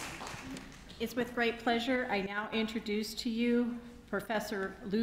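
A woman speaks calmly into a microphone, heard over loudspeakers in a large hall.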